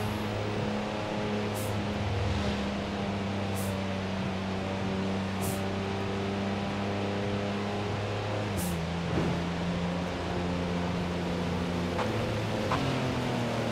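A car engine drones steadily at high speed, its pitch dropping briefly when it shifts gear.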